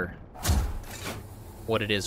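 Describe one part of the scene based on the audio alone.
Electric energy crackles and sizzles with sparks.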